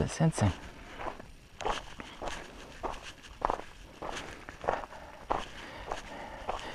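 A horse's hooves crunch on gravel in a steady rhythm.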